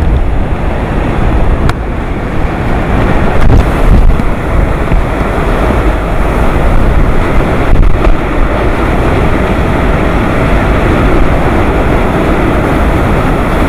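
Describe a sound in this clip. Driving rain lashes down in the wind.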